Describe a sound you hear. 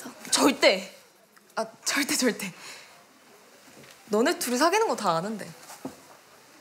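A young woman speaks calmly at close range.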